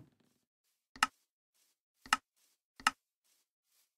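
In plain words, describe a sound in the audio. Short, sharp clicks sound one after another.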